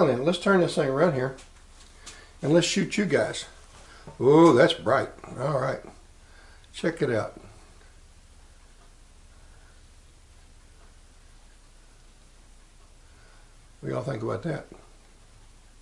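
An older man talks close to a microphone, calmly and in short bursts.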